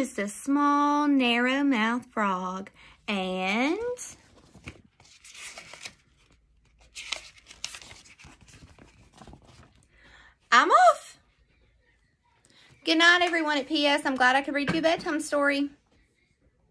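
A woman reads aloud close by, with expressive, animated voices.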